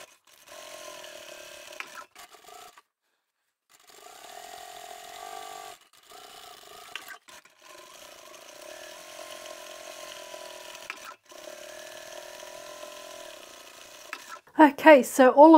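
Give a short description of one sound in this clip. A sewing machine whirs as it stitches.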